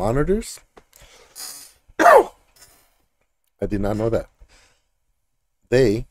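A man speaks with animation into a microphone in short bursts.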